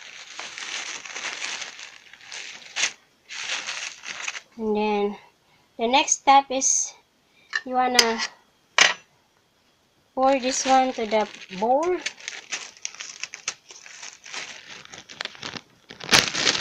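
A plastic bag crinkles and rustles as it is handled.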